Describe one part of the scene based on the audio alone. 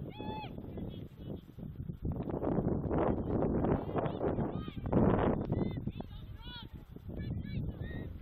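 Players shout to each other in the distance on an open outdoor field.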